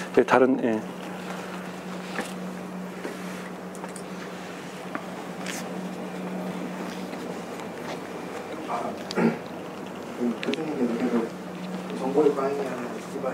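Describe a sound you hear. A man speaks into a microphone through a loudspeaker, pausing between phrases.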